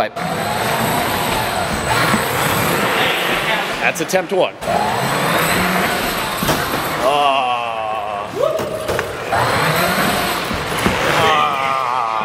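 A toy car's electric motor whines, revving up and down.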